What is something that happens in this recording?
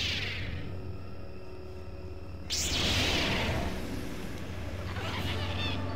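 A lightsaber hums and swishes.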